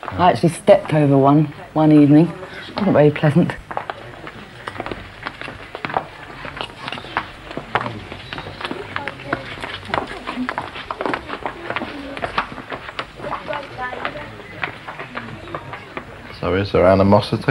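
Footsteps shuffle on cobblestones.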